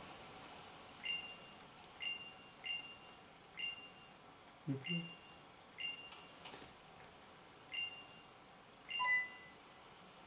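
A handheld video game plays short, bright chimes again and again.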